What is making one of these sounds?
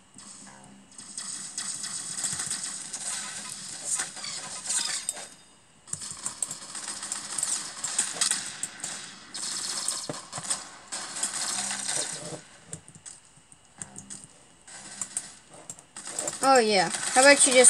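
Video game gunfire crackles in rapid bursts.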